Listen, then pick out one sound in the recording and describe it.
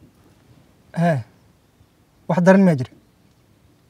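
A young man speaks tensely on a phone, close by.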